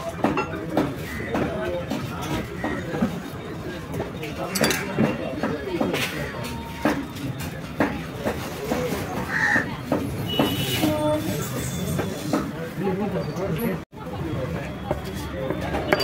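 A knife slices through raw meat.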